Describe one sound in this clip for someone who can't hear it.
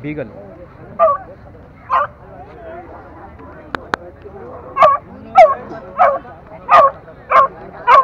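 A dog barks repeatedly nearby.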